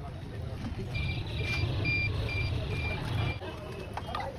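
Water pours from a bottle into a pot of liquid.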